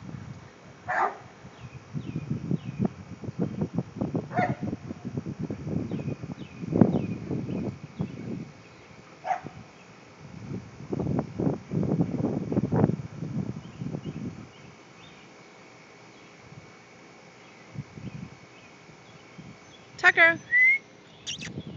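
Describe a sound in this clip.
A dog barks sharply outdoors.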